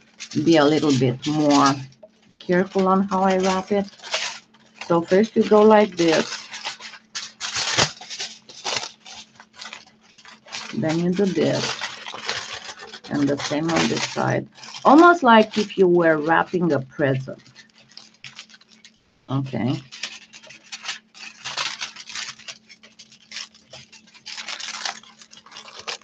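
Aluminium foil crinkles and rustles close by.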